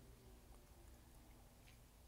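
A man sips and swallows a drink.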